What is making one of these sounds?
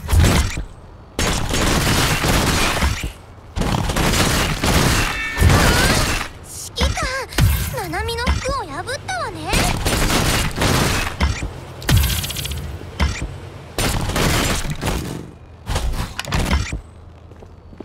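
Swords slash and clang in rapid bursts with crackling energy blasts.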